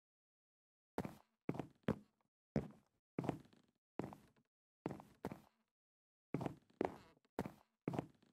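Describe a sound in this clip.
Footsteps thud steadily up wooden stairs.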